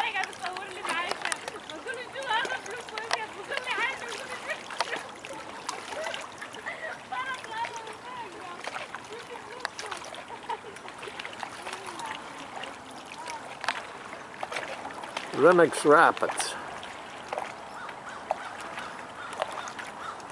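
Small waves lap and ripple on open water outdoors.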